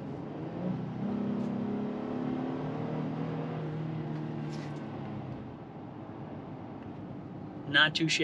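A car drives along a road with a steady low hum.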